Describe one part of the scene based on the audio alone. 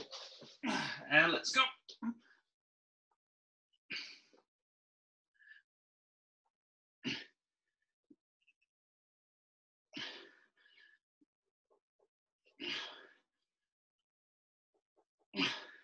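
A man exhales hard in short bursts with each push-up.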